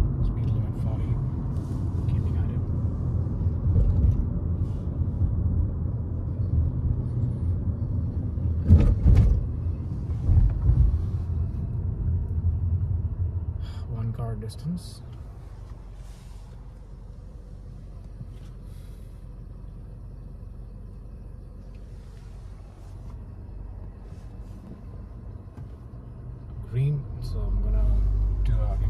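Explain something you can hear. A car engine hums steadily with low road rumble inside the cabin.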